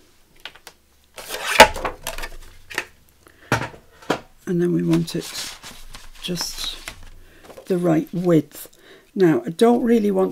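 Paper rustles and slides as sheets are handled.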